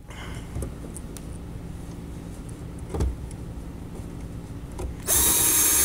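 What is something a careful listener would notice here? A screwdriver clicks and scrapes against a metal screw.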